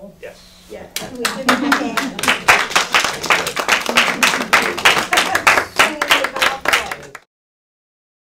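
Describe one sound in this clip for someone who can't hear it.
A group of people clap and cheer.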